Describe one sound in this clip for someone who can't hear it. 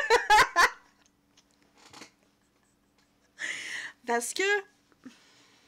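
A woman laughs loudly into a microphone.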